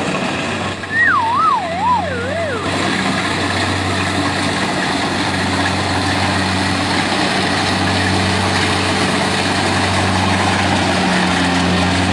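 Cut rice stalks rustle and swish under a harvester.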